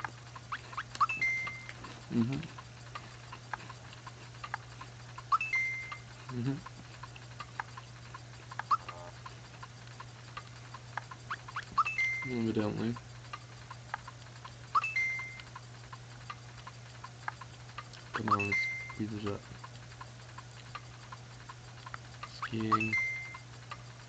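Short electronic chimes beep from a video game.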